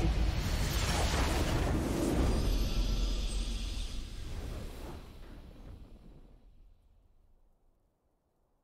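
A huge magical blast booms and rumbles, then slowly fades away.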